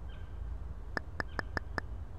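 Short bright clicks tick in quick succession.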